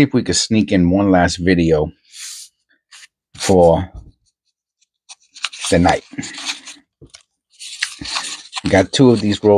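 Paper wrapping on a roll of coins rustles as fingers handle it.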